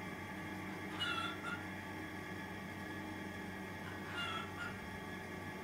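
A hen clucks softly.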